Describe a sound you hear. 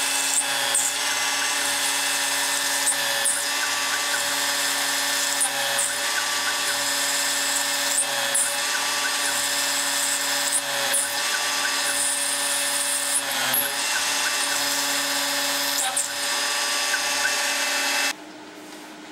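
A milling machine whines steadily as its cutter drills into metal.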